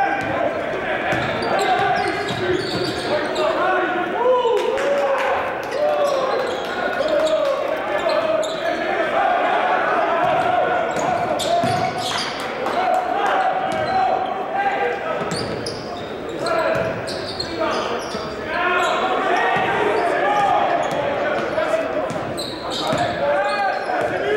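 A basketball thumps as it bounces on the court.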